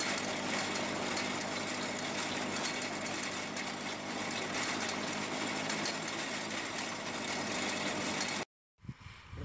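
An earth auger grinds steadily into dry soil.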